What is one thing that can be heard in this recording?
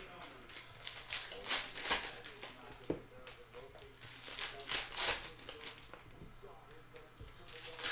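Foil card packs crinkle and tear open.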